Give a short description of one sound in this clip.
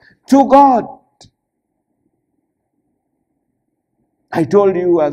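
A man preaches emphatically into a microphone, with long pauses.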